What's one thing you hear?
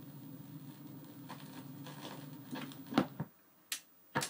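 Music plays faintly from a record player and cuts off.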